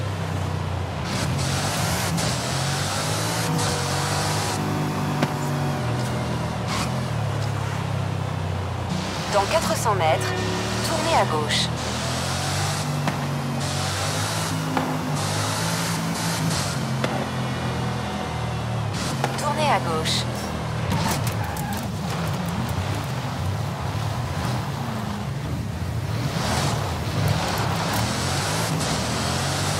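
A powerful car engine roars and revs up and down through the gears.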